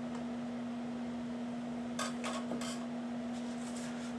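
A knife taps on a cutting board.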